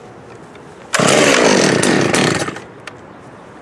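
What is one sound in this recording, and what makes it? A chainsaw revs briefly close by.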